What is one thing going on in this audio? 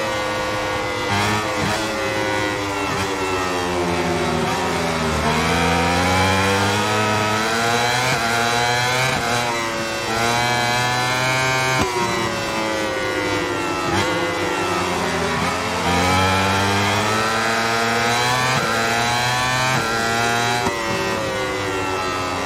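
A racing motorcycle engine screams, rising and falling in pitch as it shifts gears.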